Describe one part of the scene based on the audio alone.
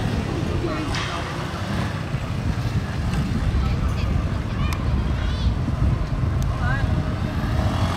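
A motorcycle engine revs and hums close by.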